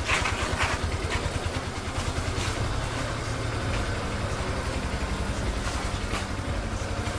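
A motorcycle engine idles with a low, steady rumble close by.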